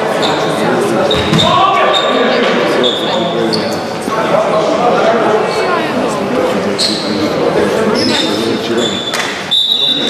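Sneakers squeak on a hard court as players run.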